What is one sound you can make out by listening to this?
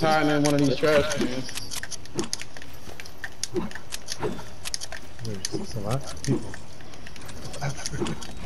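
Building pieces snap into place with quick, sharp clicks.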